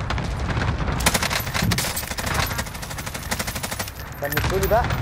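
Rapid gunfire bursts out close by.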